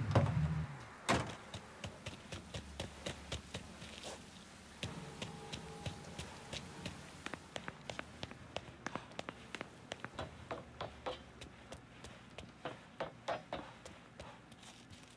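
Footsteps run quickly on hard ground and up stairs.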